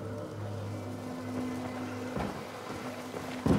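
Footsteps thud on a walkway.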